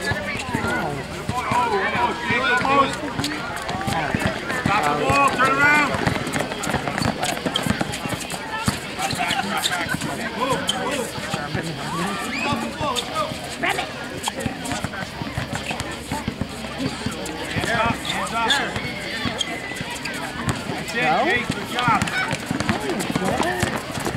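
Young people shout and cheer with excitement outdoors.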